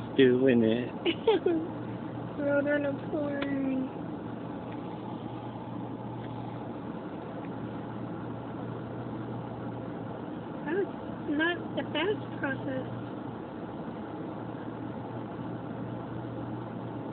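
A car engine idles with a steady low hum.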